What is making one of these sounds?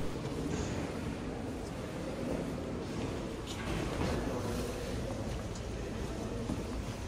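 Distant voices of visitors murmur and echo in a large hall.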